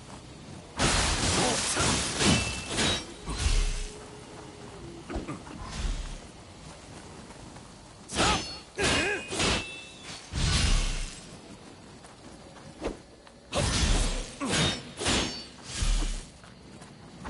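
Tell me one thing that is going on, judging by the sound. Swords clash and slash in quick bursts.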